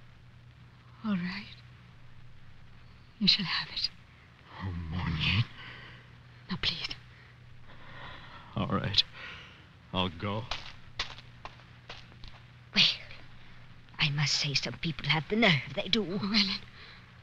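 An elderly man speaks expressively into a microphone.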